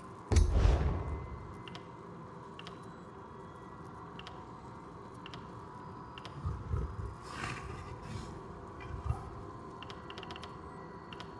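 Soft menu clicks tick now and then as a selection moves through a list.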